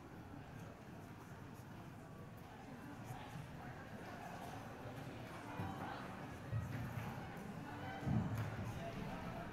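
An orchestra's instruments sound softly in a large echoing hall.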